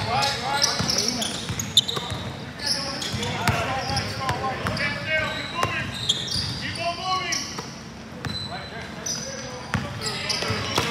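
Young men shout and call out across the court.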